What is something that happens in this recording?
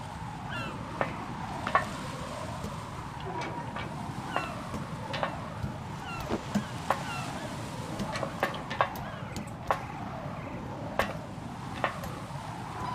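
Boots and hands clank on the rungs of a metal ladder.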